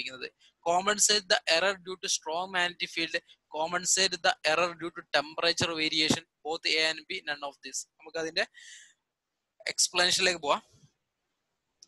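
A young man speaks calmly and steadily close to a microphone.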